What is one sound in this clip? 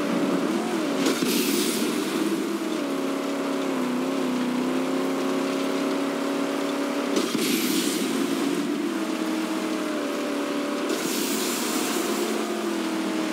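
A booster blasts with a sudden rushing whoosh several times.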